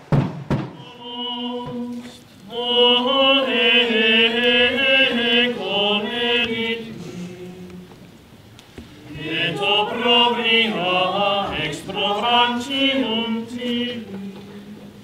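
A man sings a slow, mournful song solo, outdoors.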